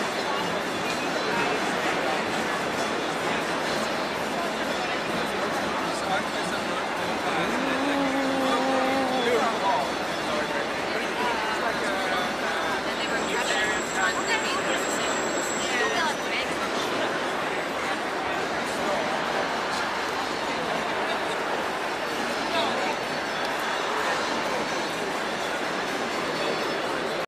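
A large outdoor crowd chatters and murmurs all around.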